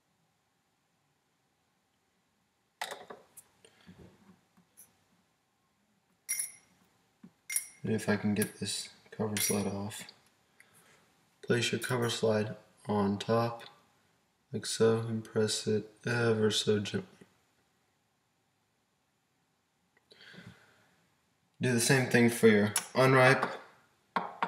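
Small objects tap and click against a wooden tabletop.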